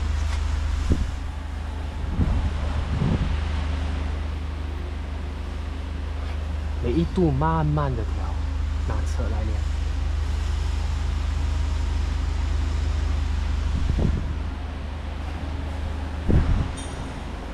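Metal tools clank and knock against a car's frame.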